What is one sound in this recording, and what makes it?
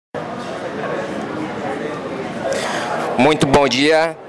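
A murmur of voices carries in the background.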